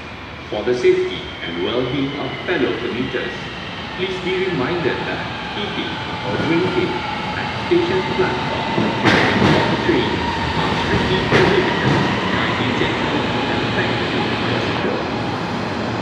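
A train pulls into a station and slows down.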